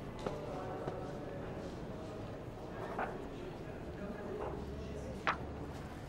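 Paper rustles as a man handles a newspaper.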